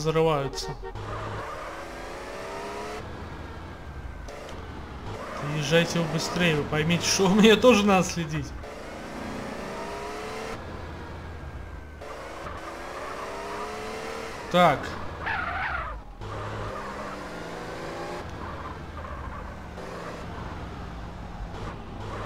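A car engine revs and drones as the car speeds along.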